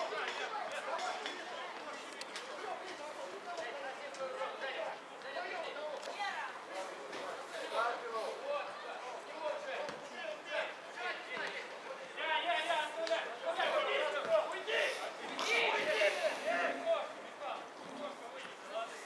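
Football players shout to one another in the distance outdoors.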